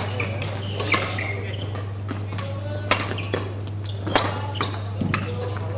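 Sports shoes squeak on a wooden court.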